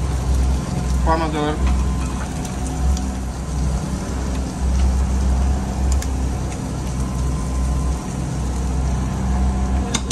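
Sauce sizzles and bubbles in a pan.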